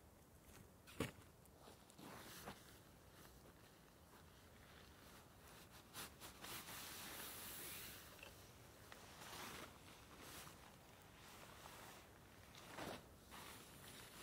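A canvas bag rustles as it is handled.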